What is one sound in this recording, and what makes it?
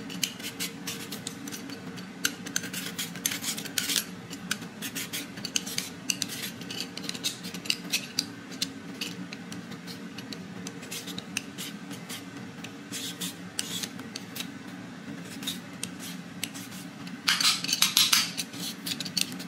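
A vegetable peeler scrapes strips of skin off a sweet potato close up.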